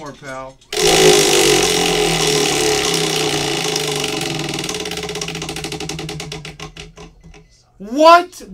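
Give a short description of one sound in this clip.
A prize wheel spins, its pointer clicking against the pegs and slowing to a stop.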